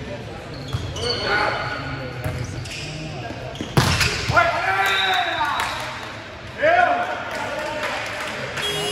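Young men shout and cheer in an echoing hall.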